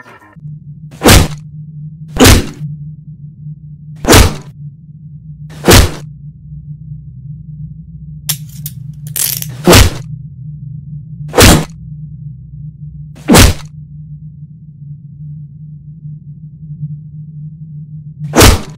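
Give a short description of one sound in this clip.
Heavy punches land on a person with loud, sharp thuds.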